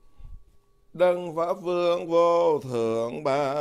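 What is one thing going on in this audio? A man chants in a deep, steady voice nearby.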